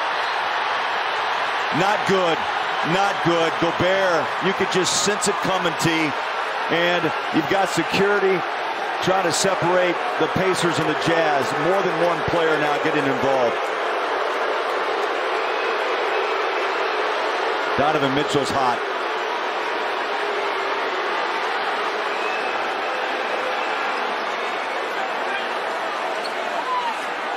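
A large arena crowd roars and shouts steadily, echoing in a big hall.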